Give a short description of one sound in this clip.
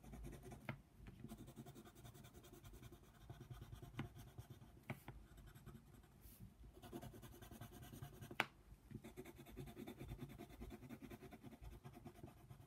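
A pencil scratches and scrapes rapidly across paper.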